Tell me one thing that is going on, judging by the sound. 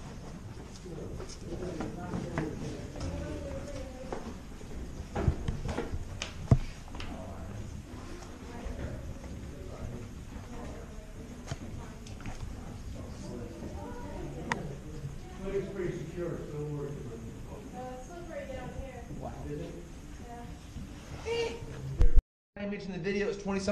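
Adults talk quietly nearby in an echoing space.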